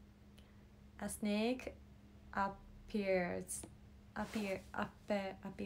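A young woman speaks softly and with animation close by.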